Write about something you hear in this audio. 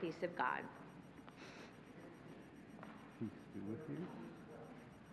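A woman speaks into a microphone in an echoing hall.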